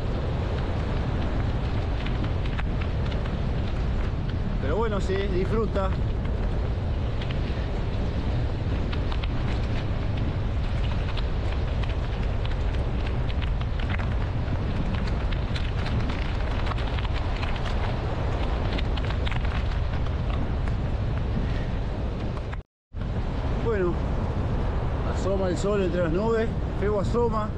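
Waves wash and break onto the shore.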